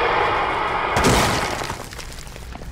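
A wooden wall smashes apart with a loud crash.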